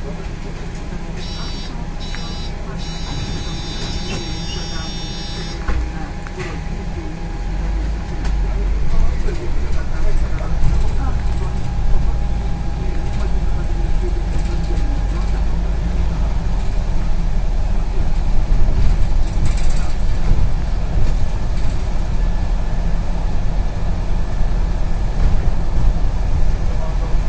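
A bus engine rumbles steadily from inside the bus.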